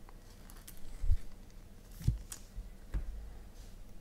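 Cards tap and rustle as hands handle them.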